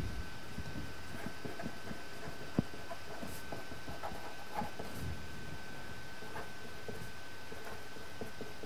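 A marker squeaks and scratches softly on paper.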